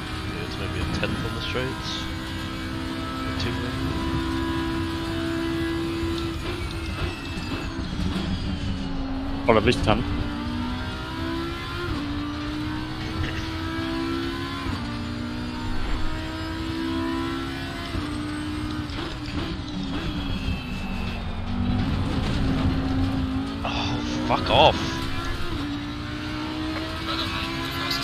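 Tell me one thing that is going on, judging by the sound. A race car engine roars at high revs, shifting gears up and down.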